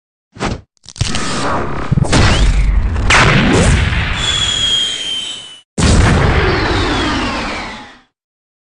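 A heavy blow lands with a loud, roaring blast that rumbles on and fades.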